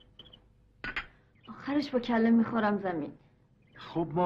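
A young woman speaks in an upset voice close by.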